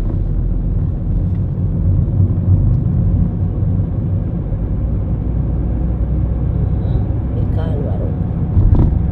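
A car engine hums with a steady low rumble from inside the car.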